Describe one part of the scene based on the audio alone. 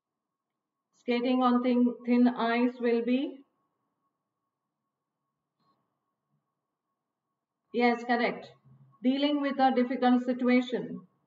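A woman speaks calmly and clearly into a microphone, in short bursts with pauses.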